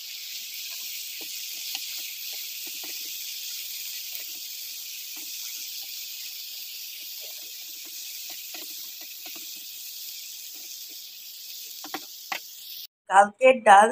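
Vegetables sizzle and hiss as they fry in a pan.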